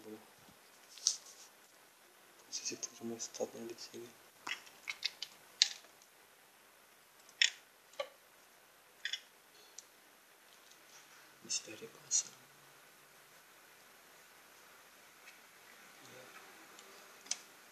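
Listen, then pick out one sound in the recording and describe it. Small metal parts click and clatter as they are handled.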